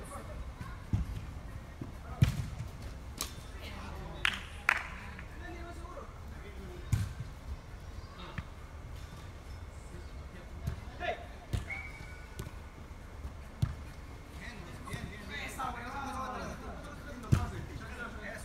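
A ball is kicked with sharp thuds in a large echoing indoor hall.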